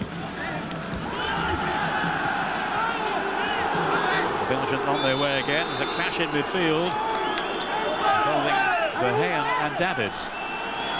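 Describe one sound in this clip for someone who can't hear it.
A large crowd sings and chants in unison.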